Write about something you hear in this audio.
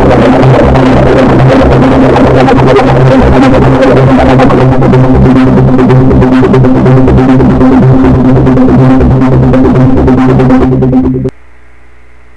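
Loud electronic synthesizer music plays with a heavy, pulsing beat, then stops abruptly.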